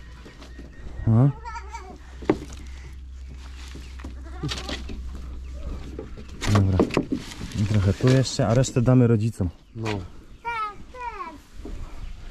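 A small child speaks in a high voice.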